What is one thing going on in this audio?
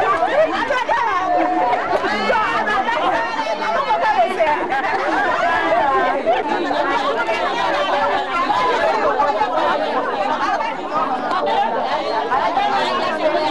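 A crowd of women talk and shout loudly over one another close by.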